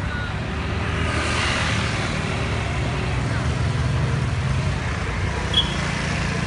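Car engines hum and tyres roll past on a road.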